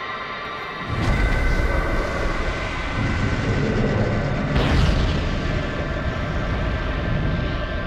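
A powerful blast of energy roars and rumbles deeply.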